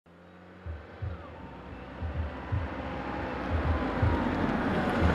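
A car engine approaches, growing steadily louder.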